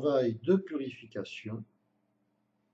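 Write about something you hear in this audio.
An elderly man speaks calmly and briefly, close by.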